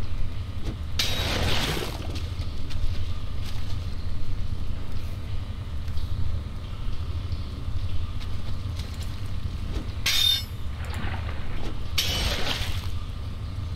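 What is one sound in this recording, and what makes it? A pick digs into a pile of debris with a gritty crunch.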